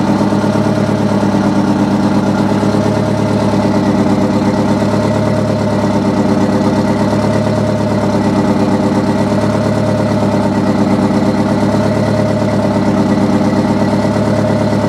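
A large diesel engine idles loudly close by with a steady, rapid throb.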